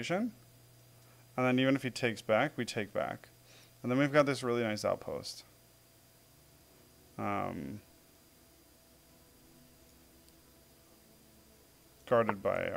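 A man talks thoughtfully into a close microphone, in short bursts with pauses.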